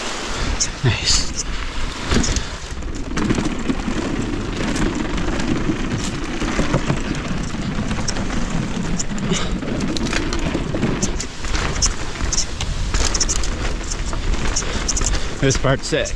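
Bike tyres crunch over a dirt trail.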